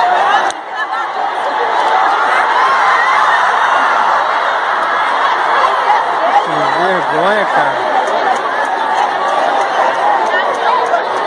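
A large crowd screams and cheers in an open stadium.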